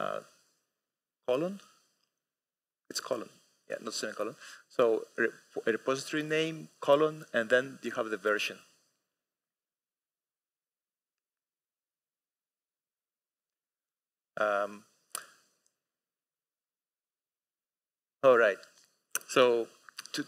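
A man speaks calmly through a microphone in a large hall, with pauses.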